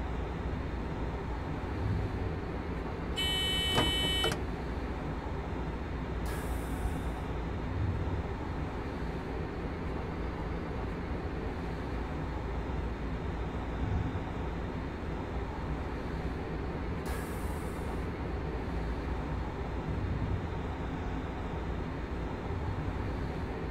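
A train rumbles steadily along the rails through a tunnel.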